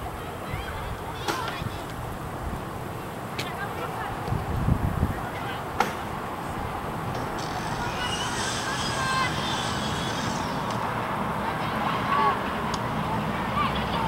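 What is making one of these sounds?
Wind blows steadily over an open outdoor space.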